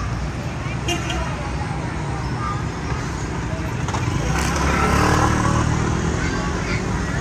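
Motor scooters ride past on a street.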